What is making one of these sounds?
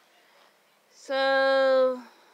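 A young woman sings a long held note close to a phone microphone.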